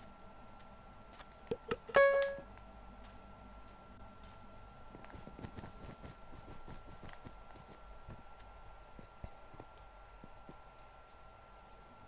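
Footsteps patter softly on hard blocks.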